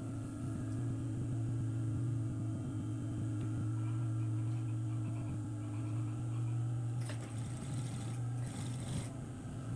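A sewing machine hums and rattles steadily.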